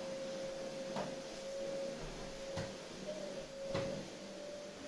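A vacuum cleaner nozzle bumps and knocks on the floor.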